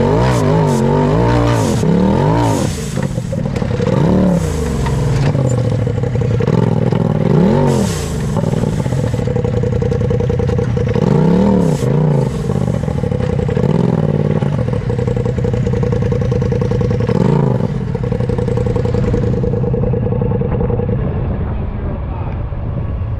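An engine roars close by, revving up and down as it climbs.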